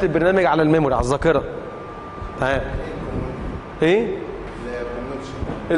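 A young man speaks calmly and clearly, as if lecturing.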